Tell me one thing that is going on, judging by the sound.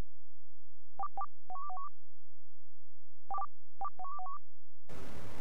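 Short electronic beeps sound in quick pairs.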